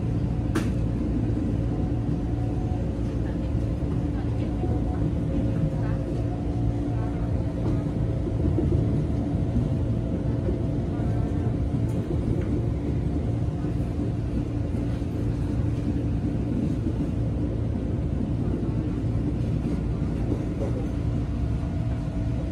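A train rumbles steadily along the tracks from inside a carriage.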